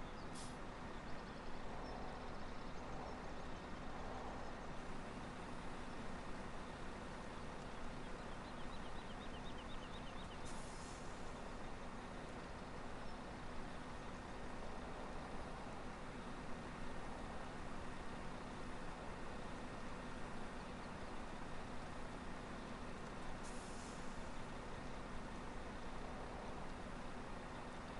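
Grain pours into a trailer with a steady rush.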